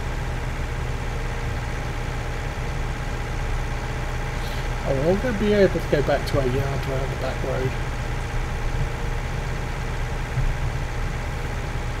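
A tractor engine drones as it drives at speed.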